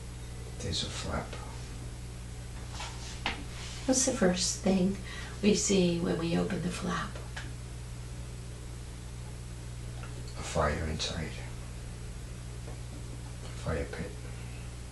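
An elderly woman snores loudly in irregular bursts nearby.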